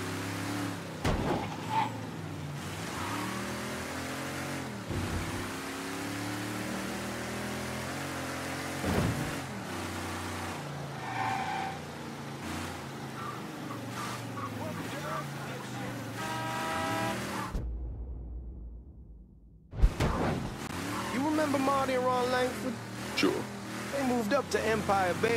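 A car engine hums steadily and revs as the car drives along.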